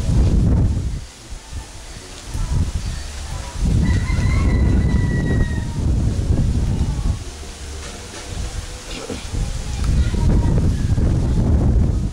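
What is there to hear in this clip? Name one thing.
Gusty wind rumbles and buffets outdoors.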